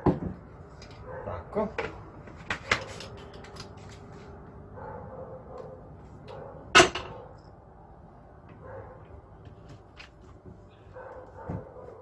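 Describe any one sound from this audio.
Metal and plastic parts clink and knock together close by.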